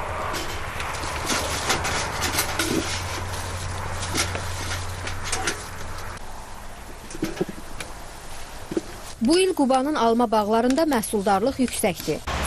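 Leaves rustle as apples are picked from branches.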